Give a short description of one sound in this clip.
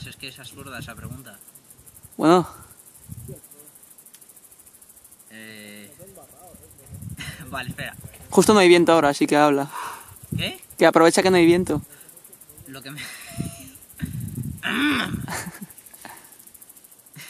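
A young man talks calmly and close by, pausing now and then.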